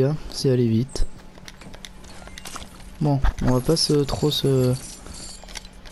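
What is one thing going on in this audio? A short chime sounds as an item is picked up.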